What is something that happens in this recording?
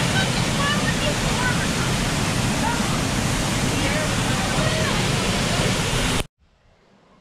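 A waterfall rushes and splashes loudly.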